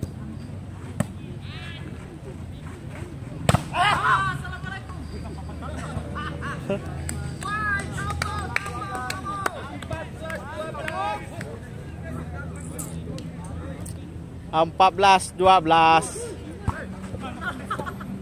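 A volleyball is struck with a dull smack.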